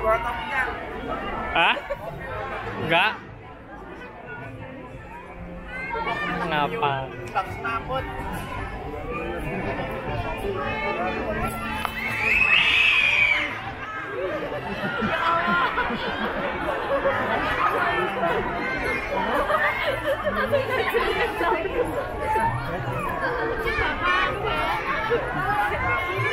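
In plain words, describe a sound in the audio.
A crowd chatters outdoors in the street.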